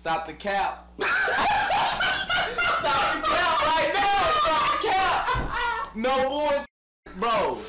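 Young men laugh loudly.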